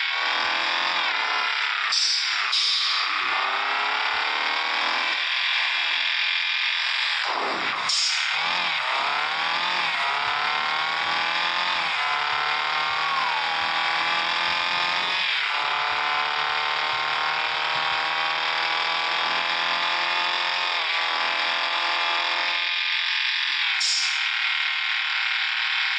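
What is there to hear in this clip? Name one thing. A car engine revs up again and again, rising in pitch and dropping as the gears shift.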